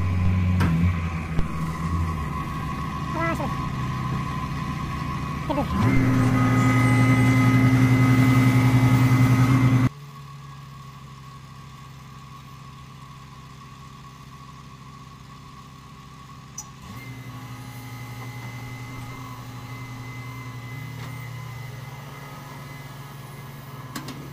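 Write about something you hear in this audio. A heavy machine's diesel engine rumbles steadily nearby.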